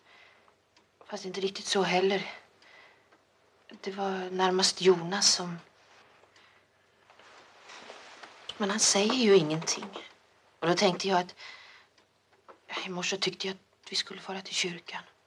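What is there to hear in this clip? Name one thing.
A young woman talks earnestly and with animation.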